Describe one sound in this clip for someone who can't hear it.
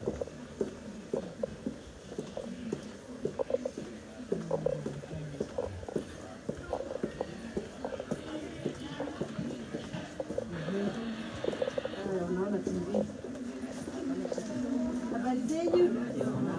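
Footsteps tap on a hard floor indoors.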